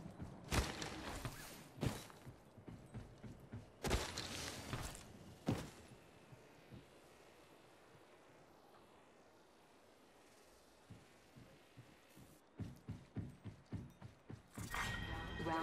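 Footsteps thud quickly on a metal roof.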